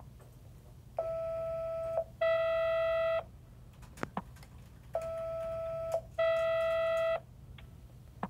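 An electronic device beeps in long, steady tones, twice in a row.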